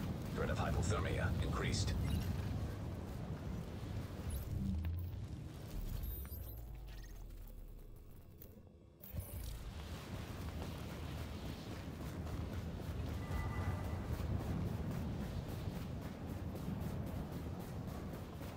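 A blizzard wind howls and roars.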